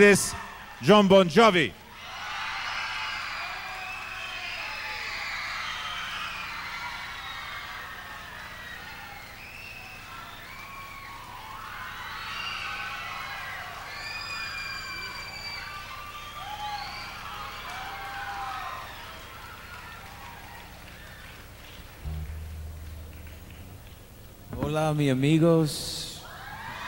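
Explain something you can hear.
A man speaks loudly into a microphone, heard through a loudspeaker.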